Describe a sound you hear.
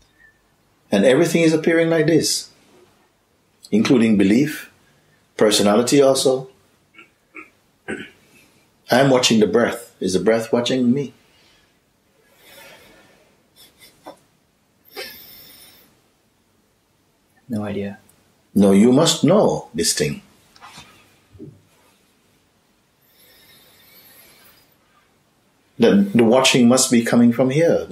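A middle-aged man speaks calmly and expressively close by, with pauses.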